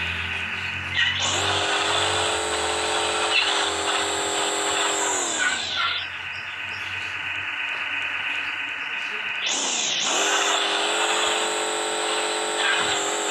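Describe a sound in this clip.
A monster truck engine revs up and whines at high pitch.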